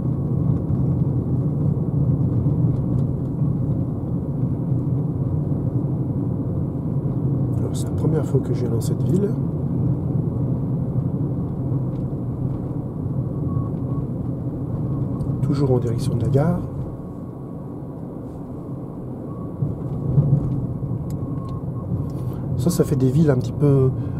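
A car drives along a road with a steady low rumble of tyres.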